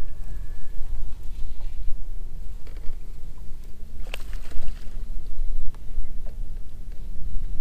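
Wind blows hard across open water.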